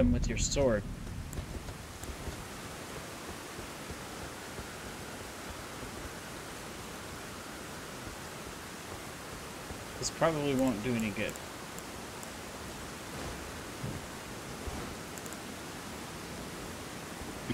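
Rain and wind hiss steadily outdoors.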